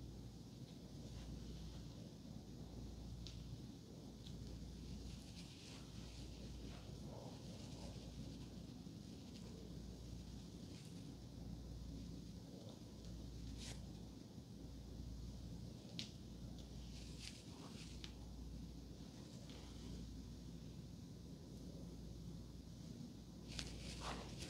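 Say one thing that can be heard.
Hair rustles softly as fingers lift and twist it.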